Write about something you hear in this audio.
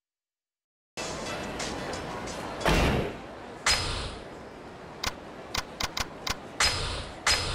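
Menu selection clicks sound in quick succession.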